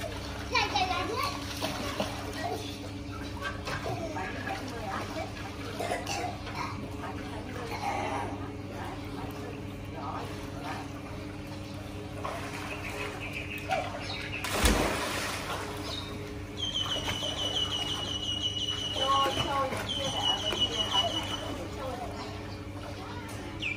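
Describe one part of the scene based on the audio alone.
Water splashes and churns as children swim.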